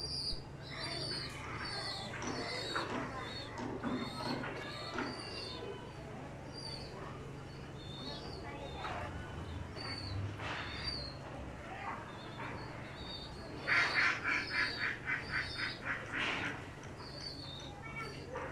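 Young pigeons peep and squeak.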